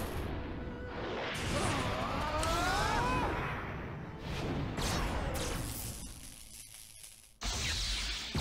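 Electric crackling and blasts burst out in a fight.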